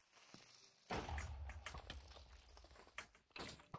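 A loud explosion booms and rumbles.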